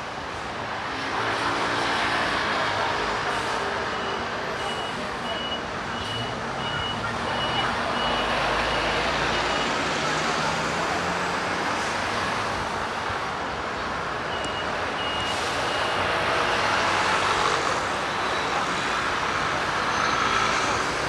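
Traffic roars steadily along a busy city street outdoors.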